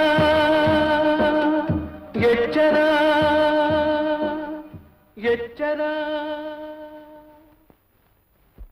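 A man sings loudly in long, held notes.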